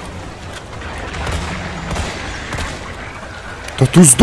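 A pistol fires several shots with a short echo.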